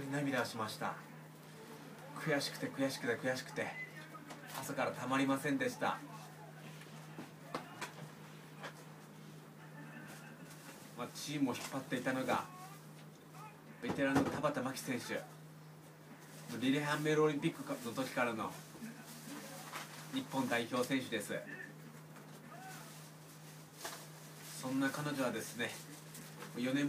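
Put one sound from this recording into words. A young man speaks calmly close by, in short phrases with pauses.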